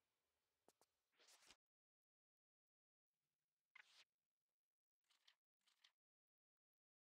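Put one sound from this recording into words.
Menu sounds whoosh and click.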